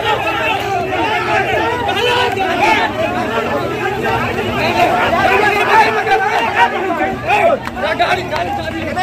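A crowd of men shout and talk over one another nearby.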